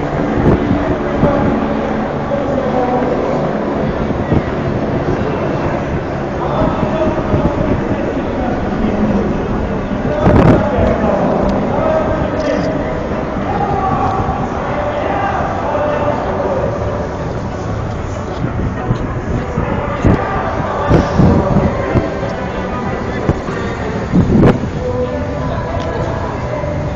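A crowd of men and women talk and chant loudly outdoors.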